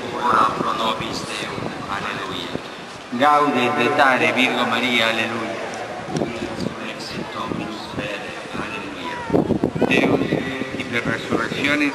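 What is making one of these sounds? An elderly man speaks slowly through loudspeakers outdoors.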